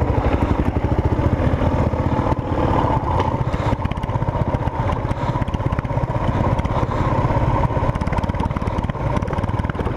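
Tyres crunch and rattle over a bumpy dirt track.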